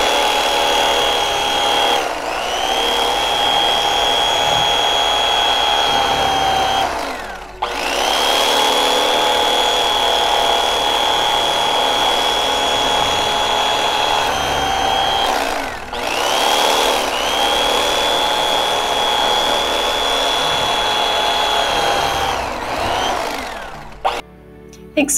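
An electric knife whirs steadily as it saws through a loaf of bread.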